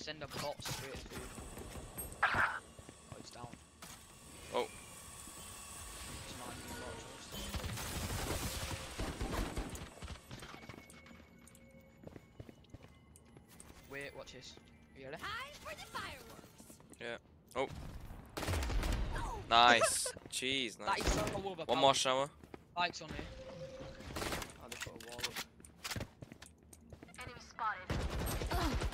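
Footsteps patter on hard ground in a game.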